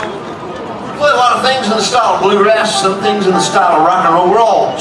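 A man sings loudly through a microphone.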